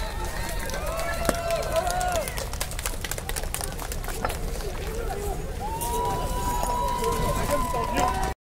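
Paving stones clatter and clink as they are tossed onto a pile.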